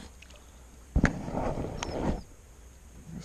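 Water splashes as a fish thrashes at the surface.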